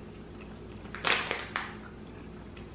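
A candy wrapper crinkles briefly.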